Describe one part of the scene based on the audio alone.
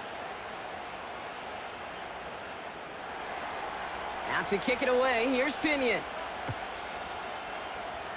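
A large stadium crowd murmurs and cheers steadily outdoors.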